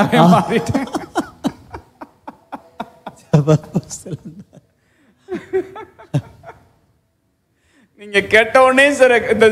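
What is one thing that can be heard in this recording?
A middle-aged man preaches with animation through a microphone, pausing between phrases.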